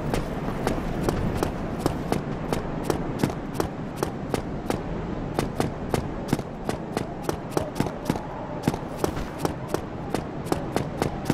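Bare feet run quickly over stone in a steady rhythm.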